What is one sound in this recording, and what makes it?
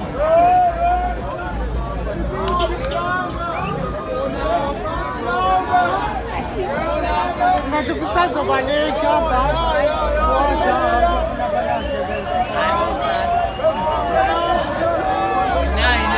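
A large crowd of men and women chatters and calls out loudly outdoors.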